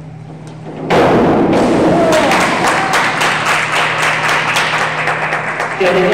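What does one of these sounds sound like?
Spectators clap and cheer loudly in an echoing hall.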